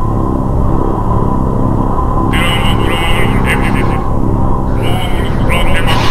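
Airship engines drone with a deep, steady hum.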